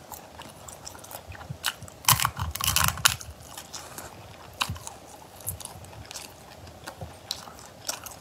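A young woman slurps and chews food close to a microphone.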